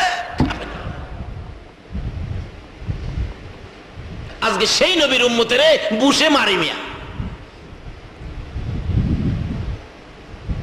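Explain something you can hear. A middle-aged man preaches loudly through a microphone, shouting with animation.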